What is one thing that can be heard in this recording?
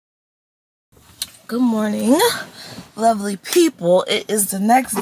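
A young woman talks with animation close to the microphone.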